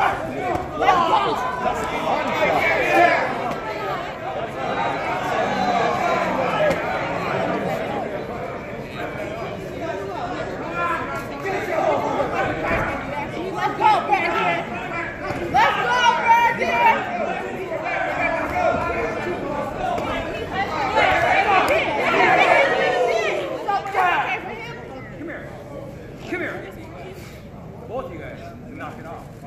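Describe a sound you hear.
A crowd of spectators shouts and cheers in a large echoing arena.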